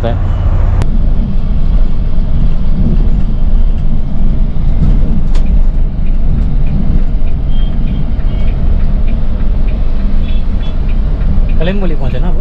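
Traffic hums around the bus in the street.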